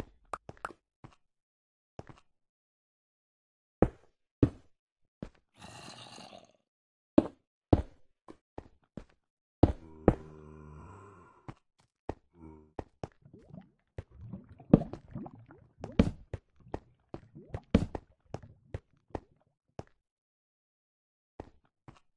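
Footsteps tap on stone in a game.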